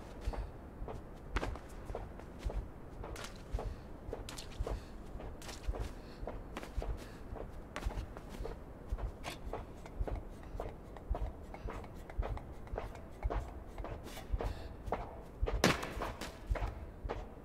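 Quick, light footsteps patter steadily on a hard floor.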